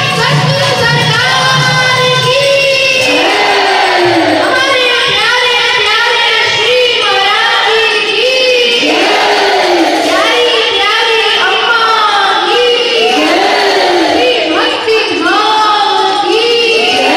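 A woman sings into a microphone, amplified through loudspeakers in a large hall.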